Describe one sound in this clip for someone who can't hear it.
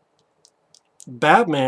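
A young man starts speaking close to a microphone.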